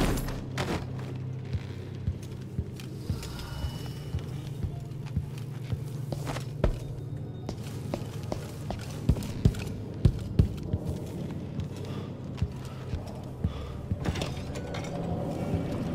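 Footsteps tread softly down wooden stairs.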